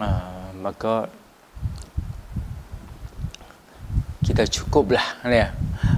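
A middle-aged man speaks calmly into a clip-on microphone, close by.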